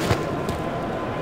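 A cricket bat strikes a ball.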